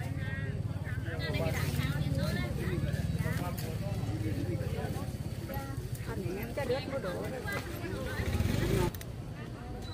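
An elderly woman talks with animation close by.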